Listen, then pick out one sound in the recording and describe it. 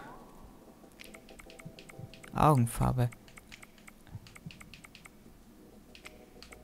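Soft electronic clicks tick as a menu selection moves.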